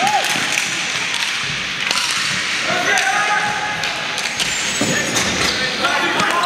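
Plastic sticks clack against each other and against a ball in a large echoing arena.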